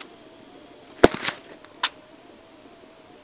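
Phone keyboard taps click sharply.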